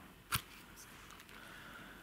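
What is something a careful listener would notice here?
A knife cuts through a mushroom stem.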